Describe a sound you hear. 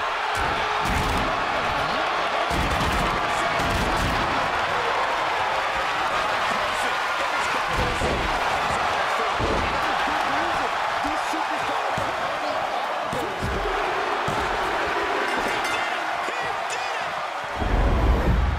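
Heavy thuds of bodies slam onto a wrestling ring.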